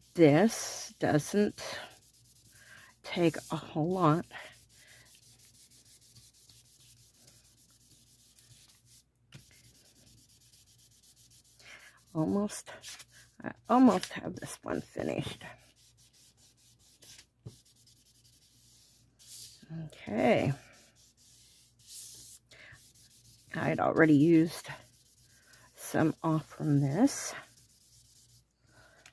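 Hands rub and smooth paper flat.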